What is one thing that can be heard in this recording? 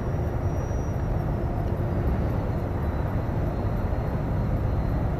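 A vehicle's engine rumbles steadily from inside as it drives along a road.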